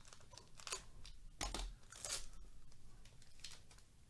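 A plastic card sleeve crinkles.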